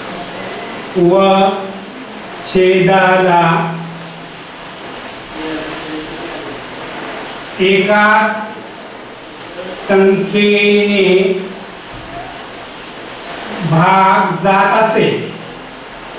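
A man speaks slowly and clearly in short phrases, as if teaching.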